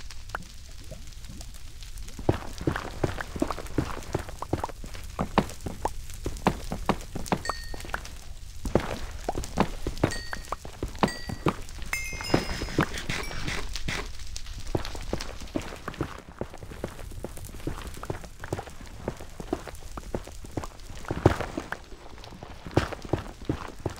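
A pickaxe chips and breaks stone blocks with rapid, repeated crunching knocks.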